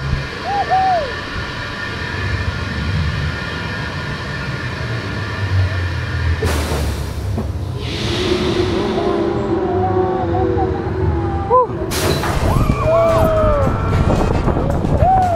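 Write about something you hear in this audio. Wind blows and buffets the microphone outdoors.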